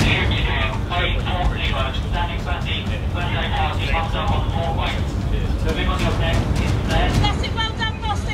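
Waves splash against a ship's hull.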